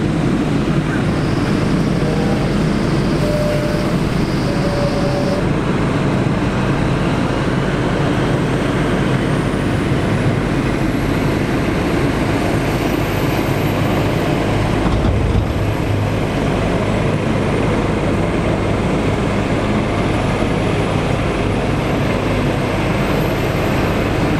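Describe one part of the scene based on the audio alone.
Heavy tractor engines rumble and roar steadily close by.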